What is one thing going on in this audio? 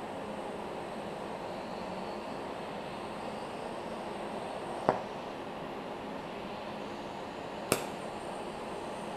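An arc welder crackles and buzzes steadily.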